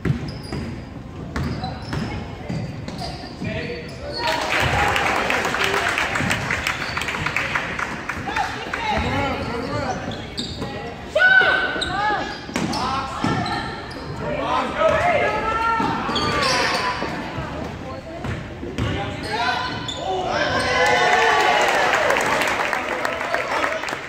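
A crowd of spectators cheers and chatters in an echoing gym.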